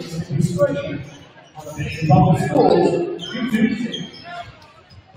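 Basketballs bounce on a wooden floor, echoing in a large hall.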